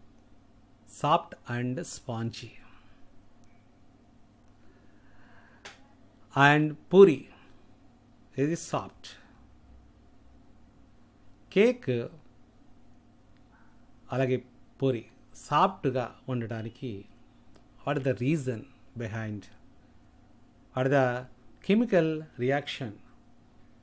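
A middle-aged man speaks calmly into a microphone in short phrases, heard as if over an online call.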